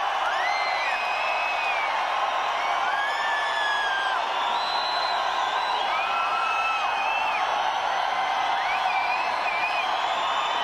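A large crowd cheers and roars steadily in a big echoing hall.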